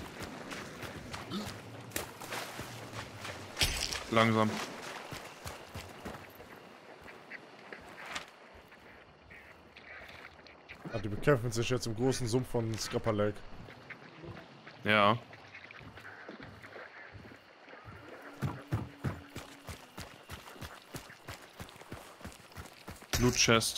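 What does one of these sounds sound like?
Footsteps thud on wooden boards and dirt.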